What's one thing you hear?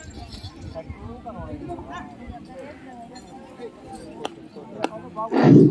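A crowd of men chatters outdoors at a distance.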